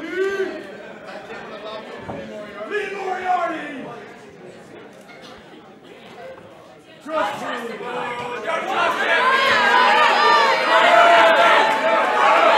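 A crowd of men and women cheers and chants loudly in an echoing hall.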